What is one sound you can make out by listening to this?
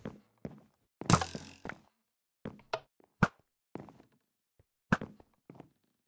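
A sword strikes repeatedly with short, sharp thuds.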